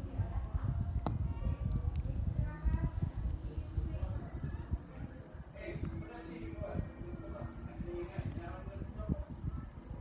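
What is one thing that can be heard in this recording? Soft slime squishes and stretches between fingers.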